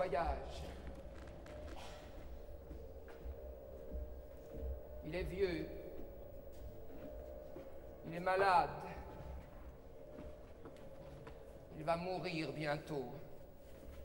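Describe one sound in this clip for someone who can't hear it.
A man sings in short phrases.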